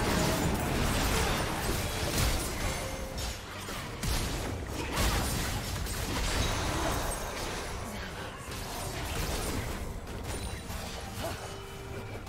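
Video game spells whoosh and hits crackle in a battle.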